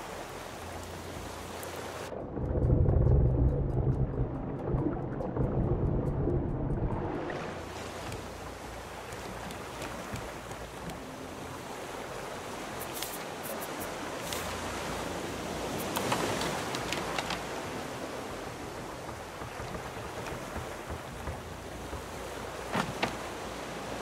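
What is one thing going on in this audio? Ocean waves wash and splash steadily outdoors.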